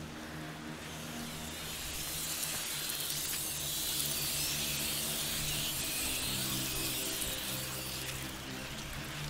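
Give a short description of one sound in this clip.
Tall grass rustles and swishes as someone crawls through it.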